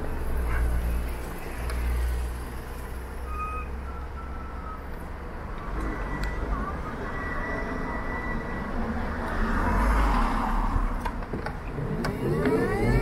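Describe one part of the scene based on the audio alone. A motorcycle engine idles close by.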